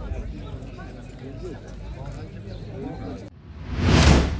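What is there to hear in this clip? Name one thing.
A crowd of men shouts and argues outdoors in the distance.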